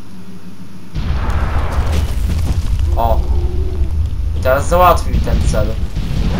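Heavy blows land in a close fight, with loud rumbling impacts.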